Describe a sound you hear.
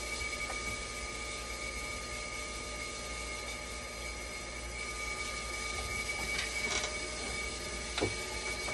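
A dialysis machine runs with a steady electronic whine.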